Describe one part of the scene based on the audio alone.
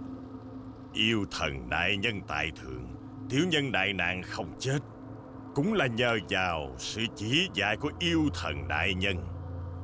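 An older man speaks slowly and gravely, close by.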